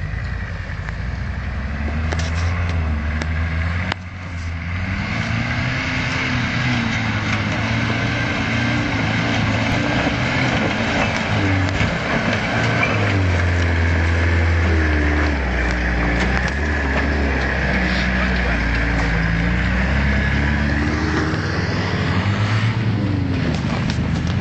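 A pickup truck's engine revs hard as it climbs a rough slope.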